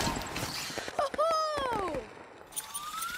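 A short game chime rings with gliding tones.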